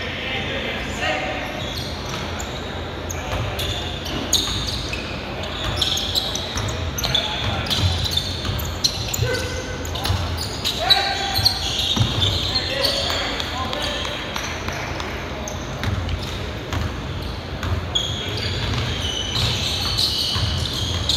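A basketball bounces on a wooden floor, echoing.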